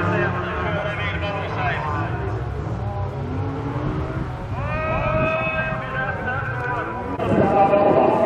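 A rally car engine revs and roars on a track.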